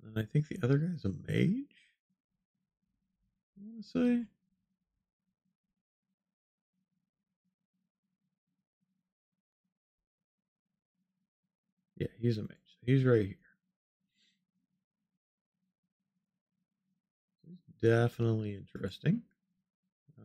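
A middle-aged man talks calmly into a close microphone, in short bursts with long pauses.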